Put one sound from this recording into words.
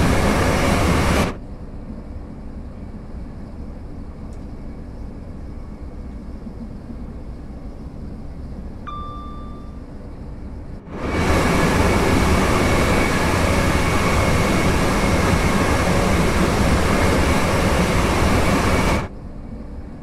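A train roars loudly along the tracks close by.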